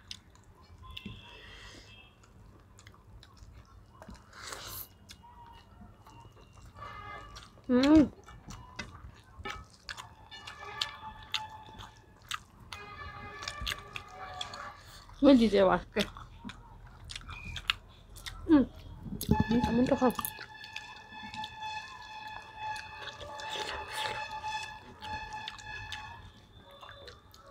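Fingers scrape and rustle food on plates.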